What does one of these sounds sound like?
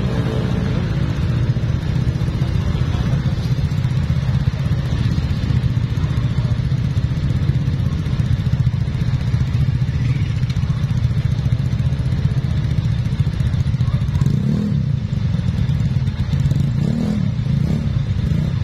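Motorbike engines idle and rumble steadily close by.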